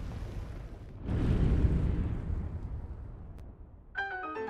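A heavy thud booms as the stone settles.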